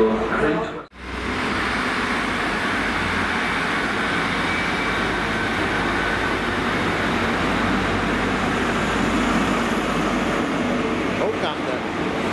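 A diesel train engine roars steadily as the train pulls in close by.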